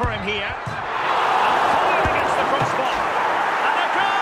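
A stadium crowd roars loudly after a goal.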